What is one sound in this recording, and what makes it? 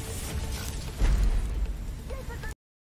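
A grenade explodes with a deep boom.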